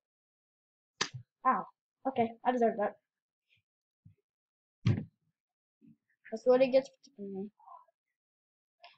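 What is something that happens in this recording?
A boy talks with excitement close to a microphone.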